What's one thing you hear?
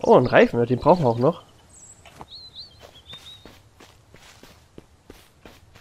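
Footsteps crunch on dry leaves and undergrowth.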